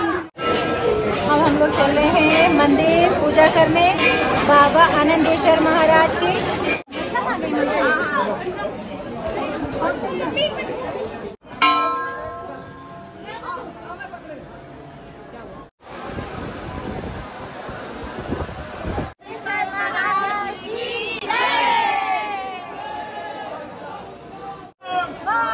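A crowd chatters around.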